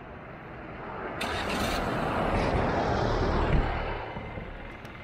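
A vehicle roars past close by and fades away.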